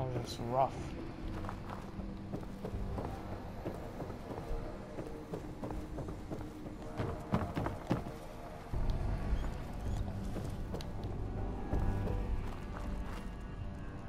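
Footsteps crunch over debris and rubble.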